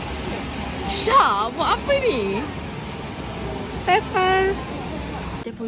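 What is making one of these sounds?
A young woman speaks close by, her voice slightly muffled.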